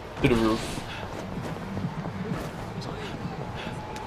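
Footsteps run quickly on a wet street.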